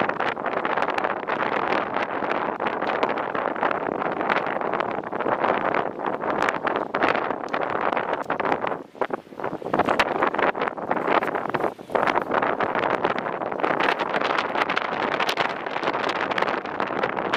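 Choppy waves splash.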